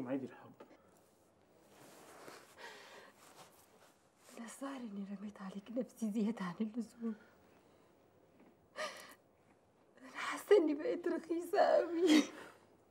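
A young woman sobs and speaks in a trembling, tearful voice close by.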